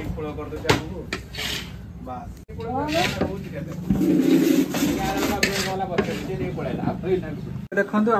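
A metal spatula scrapes and stirs food in a large iron pan.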